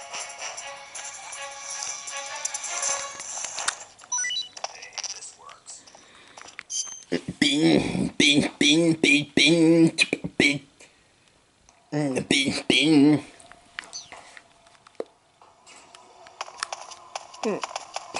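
Game music and sound effects play through a handheld console's small, tinny speakers.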